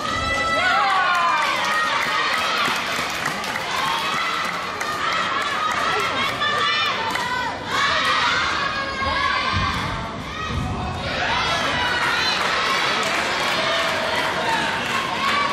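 Many voices of players and spectators chatter and call out in a large echoing hall.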